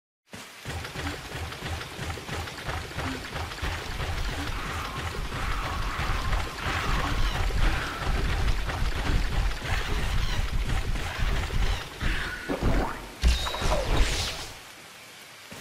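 Heavy armoured footsteps thud quickly over wet sand.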